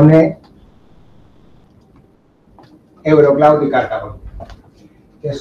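A middle-aged man speaks in short bursts, presenting to a room with a slight echo.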